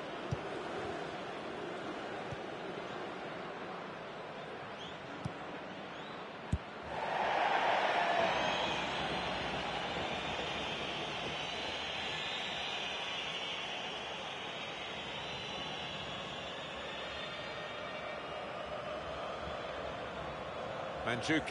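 A stadium crowd roars steadily, swelling loudly for a moment.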